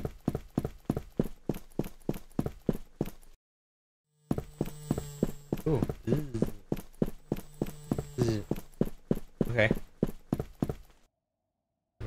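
Footsteps thud steadily on a hard floor.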